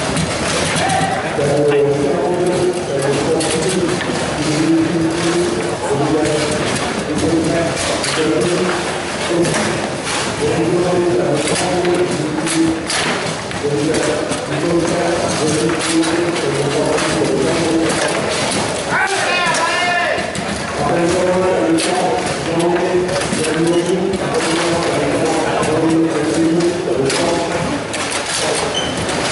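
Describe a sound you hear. A foosball ball knocks against plastic players and the table walls.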